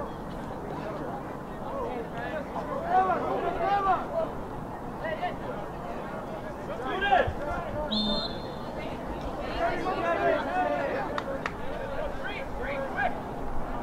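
Young men shout and call out across an open field.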